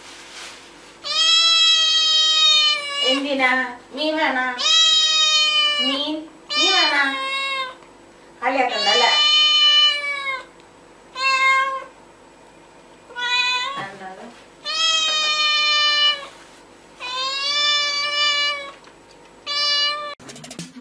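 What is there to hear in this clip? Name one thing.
A cat meows loudly and repeatedly, in long drawn-out cries close by.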